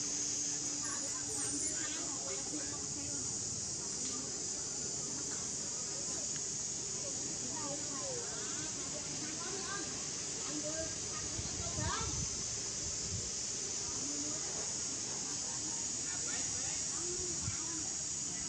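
A baby monkey squeaks softly now and then.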